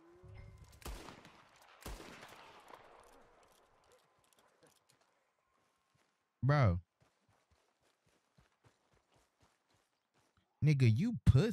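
Footsteps crunch softly on grass and gravel.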